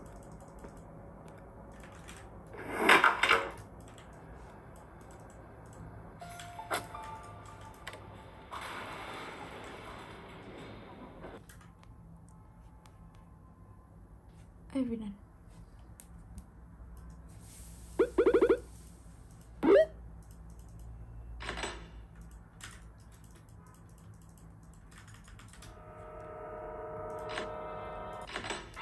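Fingers tap softly on a touchscreen.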